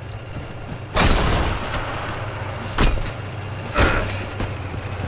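A crystal shatters with a loud crash.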